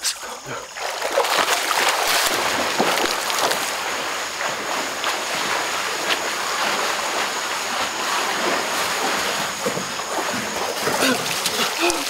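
Water splashes loudly as men thrash and swim.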